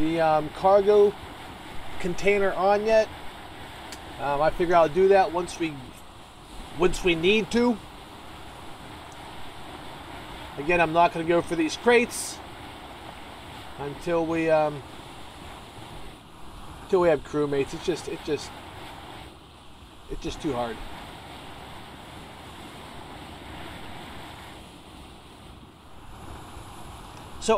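Waves wash and splash steadily against a sailing ship's hull.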